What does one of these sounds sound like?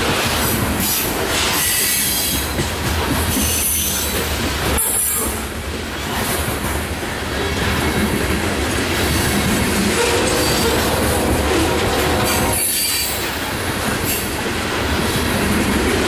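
A loaded coal freight train rumbles past close by.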